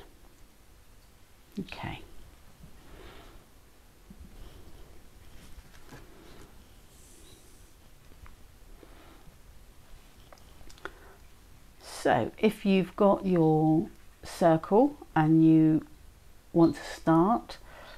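Hands softly handle and rub a small fuzzy object.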